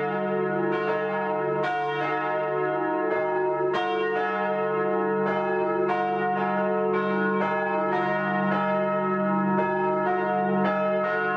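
Church bells ring loudly, each stroke ringing out and overlapping the next.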